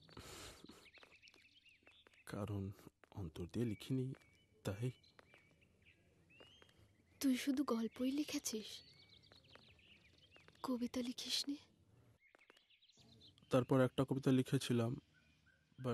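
Birds chirp in the trees.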